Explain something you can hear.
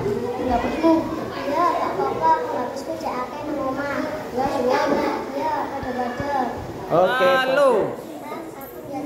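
A young girl speaks calmly nearby.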